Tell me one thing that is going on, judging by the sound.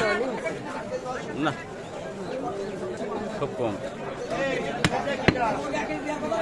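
Men chatter nearby.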